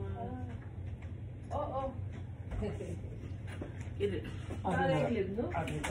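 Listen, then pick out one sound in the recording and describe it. A woman talks loudly a little way off, in a room with some echo.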